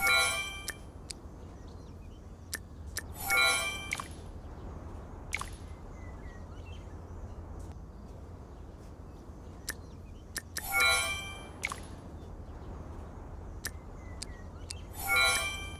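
Short soft clicks sound as menus are tapped.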